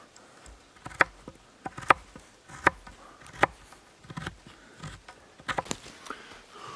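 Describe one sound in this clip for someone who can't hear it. A knife knocks sharply into wood.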